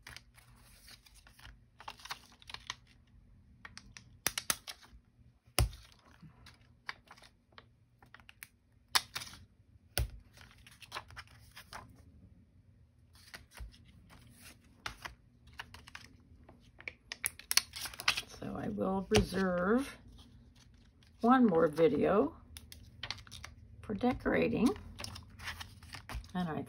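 Paper cards rustle and slide against each other.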